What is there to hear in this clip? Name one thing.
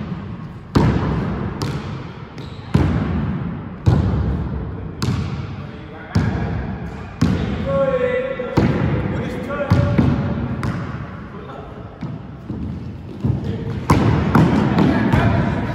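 A basketball bounces on a hard floor, echoing around a large hall.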